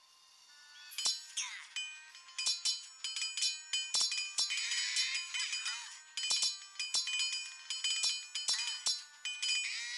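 Swords clash and clang rapidly in a battle.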